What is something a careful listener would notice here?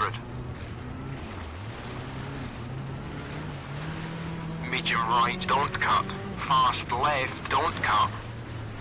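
A rally car engine drones and changes pitch as it shifts gears.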